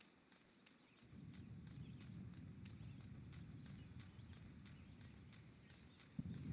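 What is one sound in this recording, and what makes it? Footsteps trudge steadily through grass.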